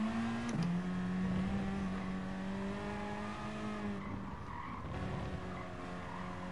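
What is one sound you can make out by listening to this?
A racing car engine drones at high revs, dropping in pitch as it shifts gear.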